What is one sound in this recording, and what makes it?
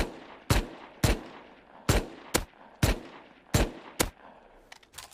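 Gunshots fire in quick single bursts with a sharp echo.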